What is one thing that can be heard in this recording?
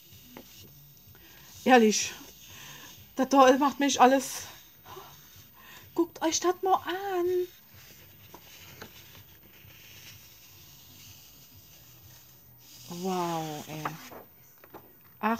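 Sheets of paper rustle as they are leafed through.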